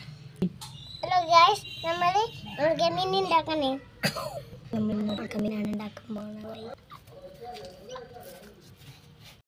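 A young boy talks in a high voice nearby.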